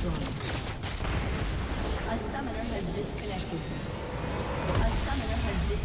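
Game spell effects crash and crackle in a hectic fight.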